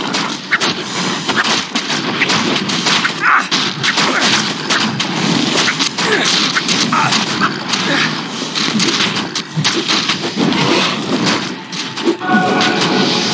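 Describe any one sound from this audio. Weapons clash and strike repeatedly in a fight.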